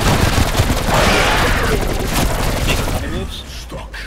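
Rapid gunfire blasts loudly.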